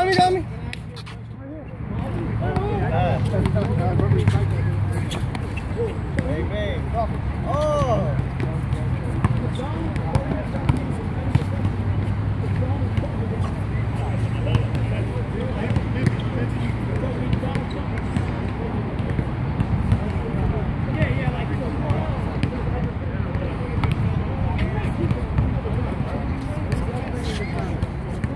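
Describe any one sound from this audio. Young men call out to each other during a game, outdoors.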